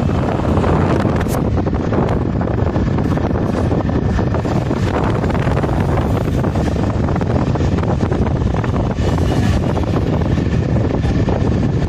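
Wind rushes and buffets loudly against the microphone of a moving vehicle.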